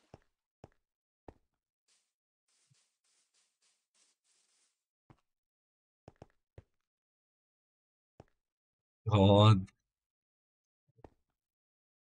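Footsteps thud softly and unevenly on hard ground.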